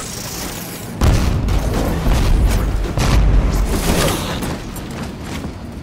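An energy sword swings with a sharp electric whoosh.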